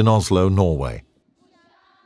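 A man shouts a loud command outdoors.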